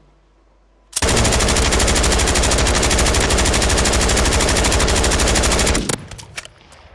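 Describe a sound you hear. A rifle fires in a long rapid burst.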